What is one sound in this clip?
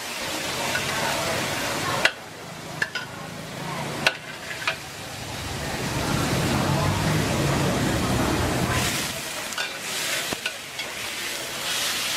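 Food sizzles in hot oil in a wok.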